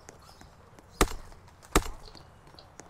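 A pickaxe strikes stone with sharp knocks.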